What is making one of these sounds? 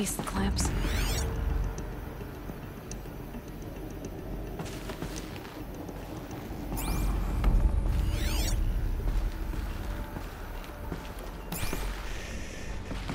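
Shimmering electronic tones sweep up and down in short bursts.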